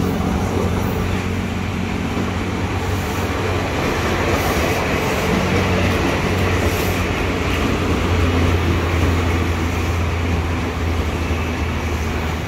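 An electric train rolls past close by with rattling and squealing wheels.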